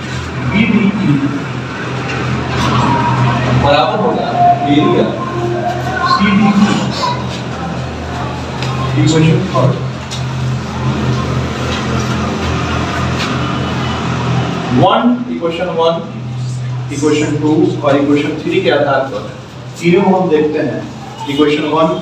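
A man speaks steadily.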